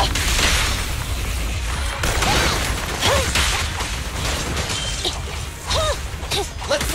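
Sword slashes swish and clang in quick succession.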